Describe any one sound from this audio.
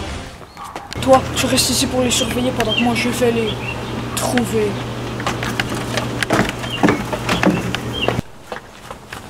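A teenage boy talks calmly nearby.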